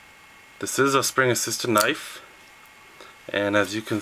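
A folding knife blade flicks open with a click.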